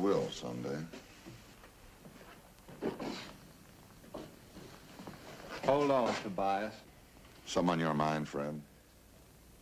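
A man speaks tensely at close range.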